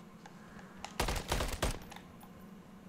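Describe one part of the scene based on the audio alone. A burst of gunshots rings out close by.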